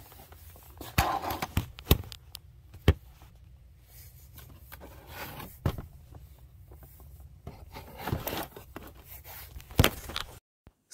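Cardboard packaging rustles and knocks as it is handled.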